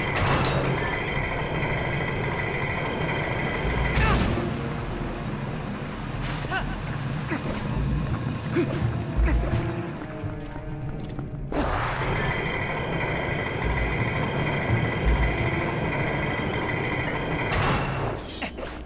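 A spinning top whirs and grinds steadily along a metal rail.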